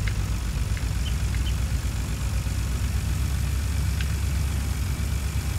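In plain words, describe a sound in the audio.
A heavy truck engine rumbles steadily as the vehicle drives along.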